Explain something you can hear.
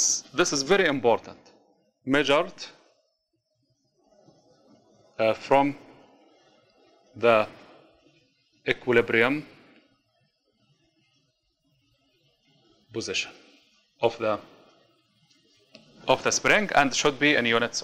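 A man speaks calmly in short bursts, as if explaining.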